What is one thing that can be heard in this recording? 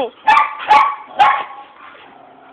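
A dog barks loudly nearby.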